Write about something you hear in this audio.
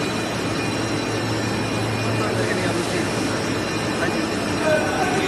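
A film coating line runs with a steady mechanical hum of rollers turning.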